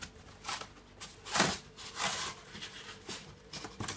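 Plastic wrap crinkles.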